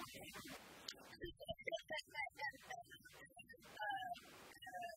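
A young woman laughs brightly.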